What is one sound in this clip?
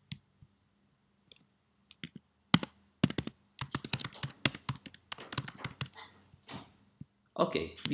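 Computer keys click rapidly as someone types.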